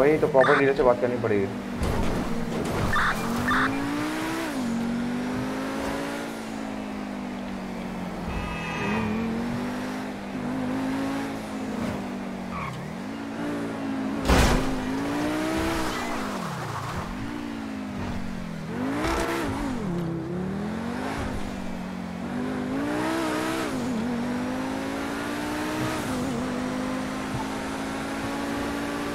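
A car engine roars, revving up and down.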